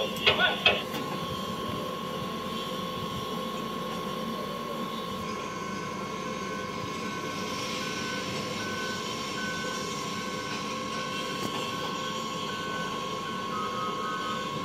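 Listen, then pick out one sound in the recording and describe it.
A heavy dump truck's diesel engine rumbles steadily.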